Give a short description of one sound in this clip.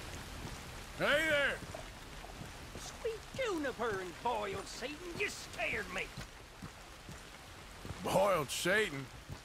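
A man exclaims loudly in surprise.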